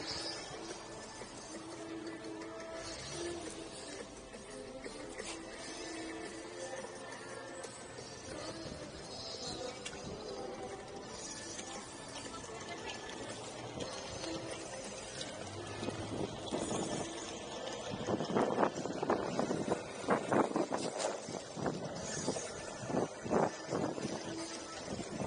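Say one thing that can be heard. Skateboard wheels roll and rumble steadily over asphalt.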